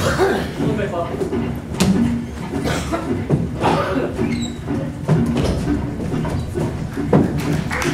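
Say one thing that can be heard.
Heavy cases knock and bump as they are carried.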